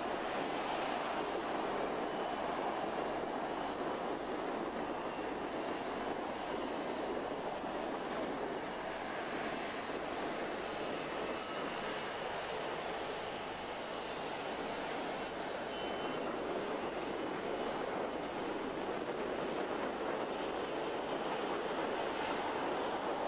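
A four-engine turboprop airliner roars at full power on its takeoff run.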